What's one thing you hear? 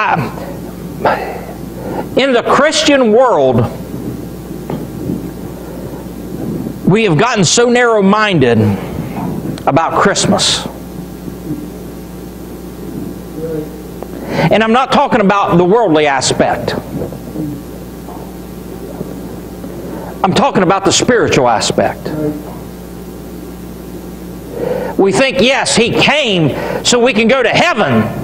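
A man preaches with feeling into a microphone, in bursts with pauses, in an echoing hall.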